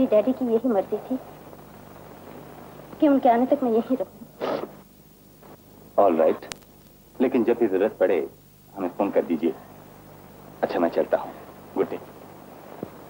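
A man speaks sternly, close by.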